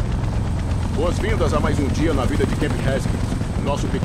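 A helicopter's rotors thud in the distance.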